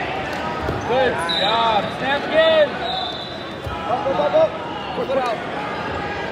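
Spectators shout loudly in bursts.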